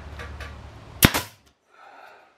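A nail gun fires with a sharp bang.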